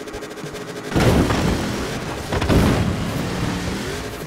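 A vehicle crashes through a stone wall with heavy thuds.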